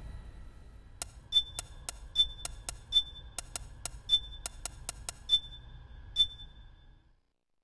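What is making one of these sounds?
Keypad buttons beep quickly as a code is entered.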